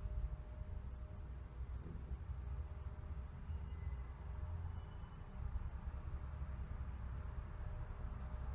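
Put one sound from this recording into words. An elevator car hums and rumbles steadily as it rises.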